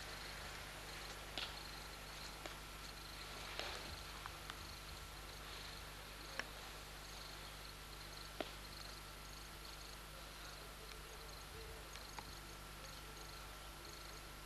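Cows tear and munch grass close by.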